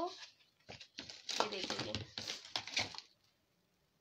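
Plastic kitchenware clatters as a hand moves it around.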